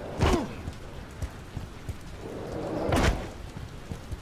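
Heavy thuds sound as something lands hard.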